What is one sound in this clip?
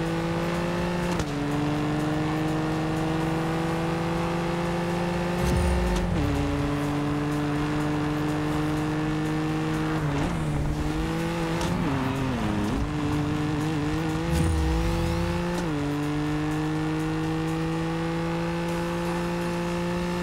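A car engine roars loudly, rising in pitch and dropping as the gears shift.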